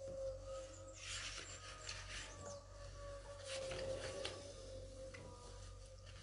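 Paper rustles as pages are turned by hand.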